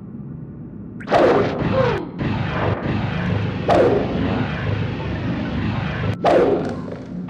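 A fireball bursts and roars.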